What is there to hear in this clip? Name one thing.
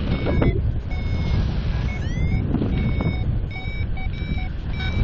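Wind rushes loudly past the microphone in flight.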